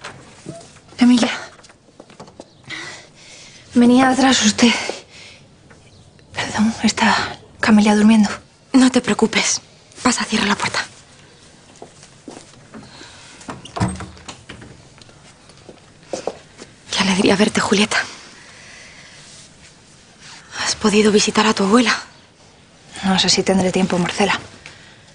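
Several young women talk with one another nearby, with animation.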